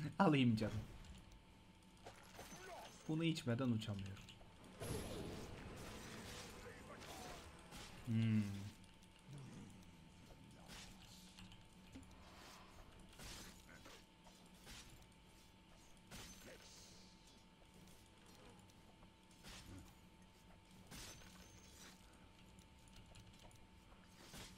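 Game sound effects of clashing and spells play throughout.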